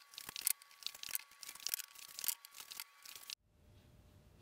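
Small wooden blocks click and clatter as a man turns them by hand.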